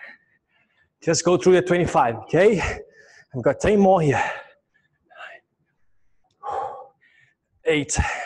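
A man speaks with energy into a close microphone.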